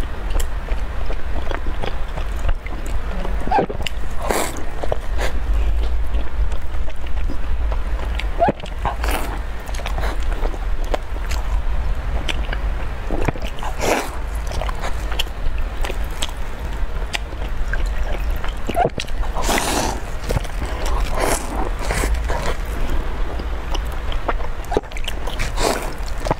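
A young woman chews and bites into soft bread close to a microphone.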